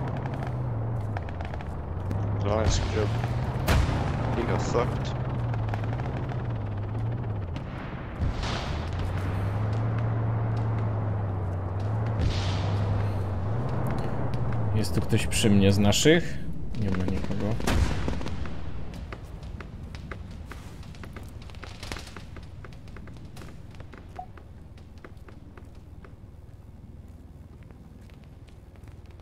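Boots crunch on gravel and concrete in quick footsteps.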